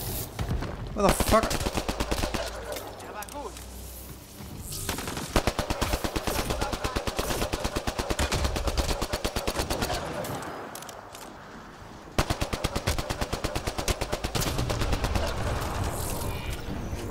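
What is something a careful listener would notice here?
A beam weapon fires in rapid, crackling bursts.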